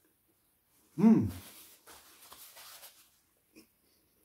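A man blows out a sharp, loud breath up close.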